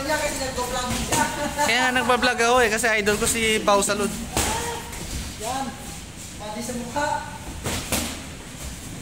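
Boxing gloves thud against bodies and gloves.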